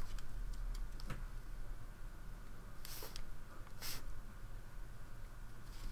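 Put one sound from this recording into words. A paintbrush dabs softly on paper.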